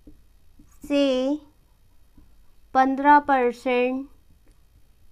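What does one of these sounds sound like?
A young woman speaks slowly and clearly nearby.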